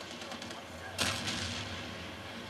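A loud blast bursts close by.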